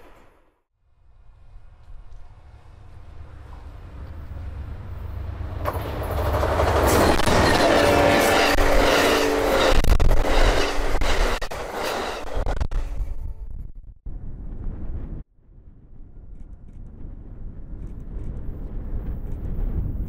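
A diesel locomotive roars as it approaches and passes.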